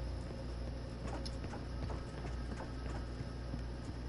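Footsteps thud steadily.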